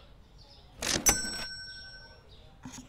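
A cash register chimes once.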